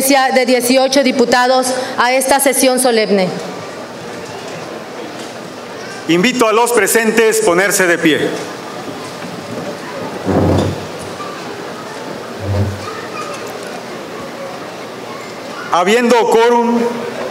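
A man speaks formally through a loudspeaker in a large echoing space, pausing between phrases.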